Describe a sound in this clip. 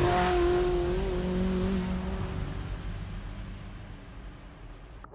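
A truck engine drones steadily, then slowly fades.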